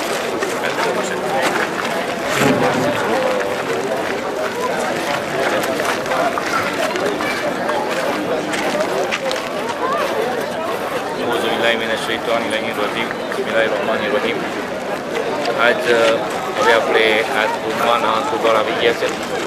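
A middle-aged man speaks calmly into a handheld microphone close by.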